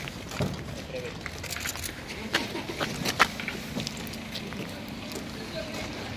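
Van doors clatter and bang.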